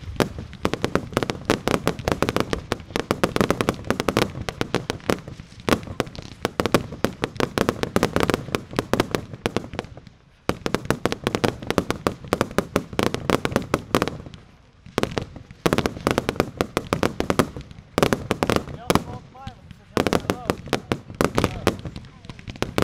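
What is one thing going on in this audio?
Fireworks whistle as they shoot upward.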